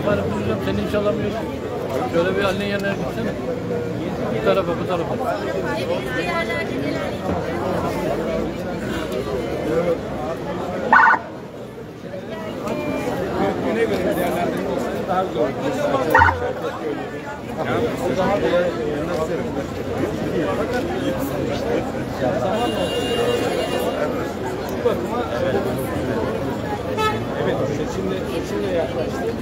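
A large outdoor crowd chatters all around, close by.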